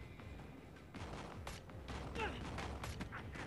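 Gunshots ring out in bursts.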